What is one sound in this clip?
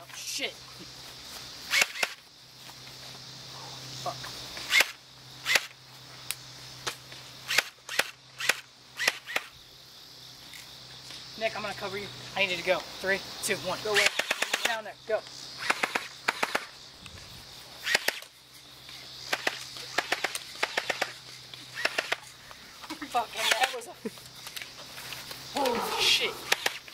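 A toy gun fires with sharp, quick pops.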